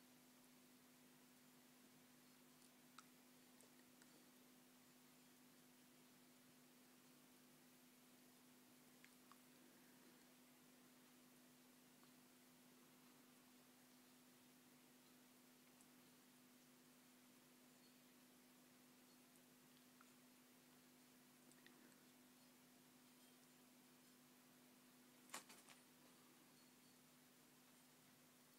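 A cat softly licks another cat's fur.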